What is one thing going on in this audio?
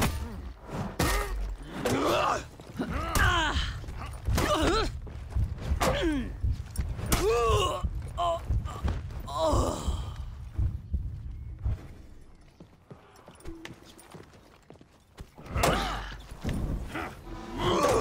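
Steel blades clash and strike with sharp metallic hits.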